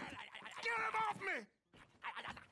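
A man shouts in distress.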